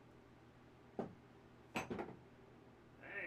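Split wood pieces clatter onto the floor.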